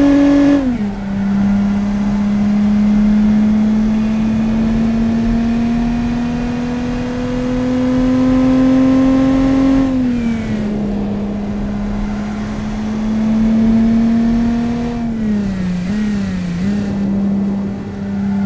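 A car engine hums steadily, its pitch climbing slowly and dropping at each gear change.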